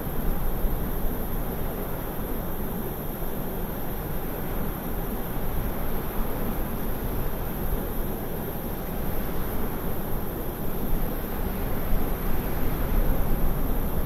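Jet engines roar steadily as an airliner flies low on approach.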